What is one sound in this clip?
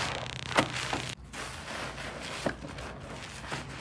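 Thick suds crackle and fizz as hands swirl them in a basin.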